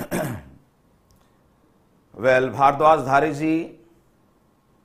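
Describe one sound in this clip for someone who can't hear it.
A man speaks clearly into a microphone, like a teacher reading out.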